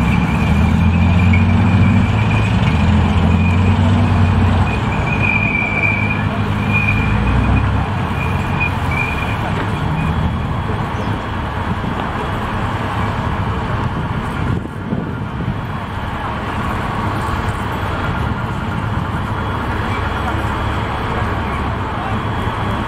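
Heavy armoured vehicle engines rumble steadily outdoors.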